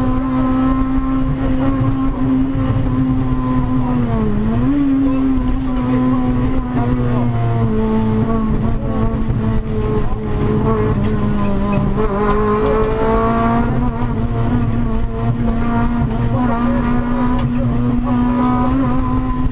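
Tyres rumble and crackle over a rough gravel road.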